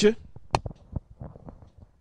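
A second man speaks into a microphone close by.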